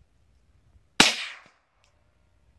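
A gun fires a single loud shot that echoes briefly outdoors.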